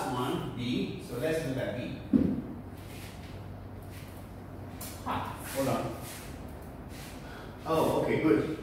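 A man lectures aloud in a calm, steady voice.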